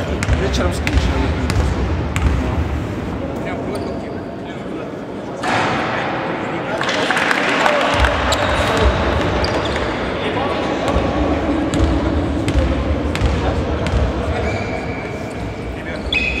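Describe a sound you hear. A basketball bounces on a hard court in a large echoing hall.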